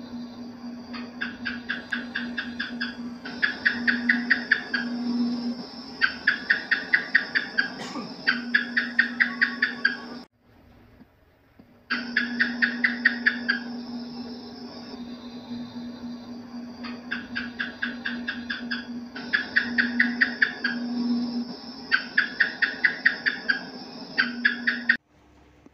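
Geckos chirp in rapid bursts of clicking calls.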